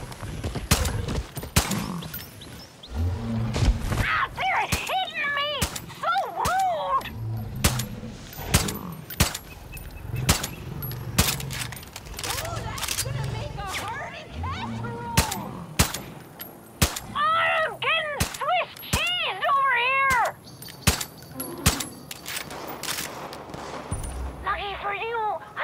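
Pistol shots fire in quick, repeated bursts.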